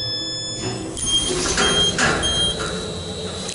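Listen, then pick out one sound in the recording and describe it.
An elevator beeps three times in short bursts.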